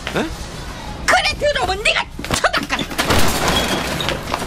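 An elderly woman shouts in distress.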